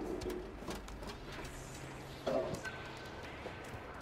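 A cat's paws patter softly on a metal roof.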